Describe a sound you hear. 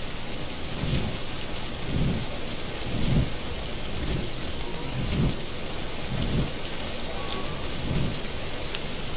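A large bird flaps its wings in steady, heavy beats.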